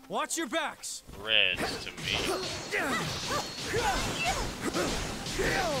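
Fire blasts and blows crash in a fast fight.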